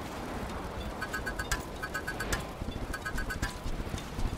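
A crafting hammer taps and clinks in quick bursts.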